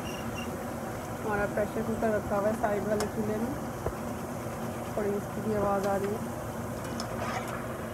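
A metal skimmer scrapes against a pan.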